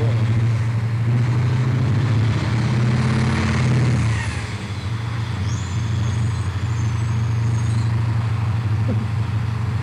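A huge diesel truck engine rumbles and roars close by.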